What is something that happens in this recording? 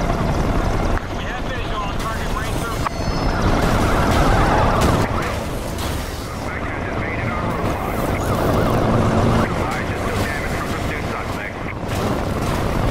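A sports car engine roars at high revs.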